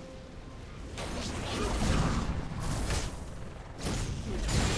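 Video game spell effects whoosh and crash during a fight.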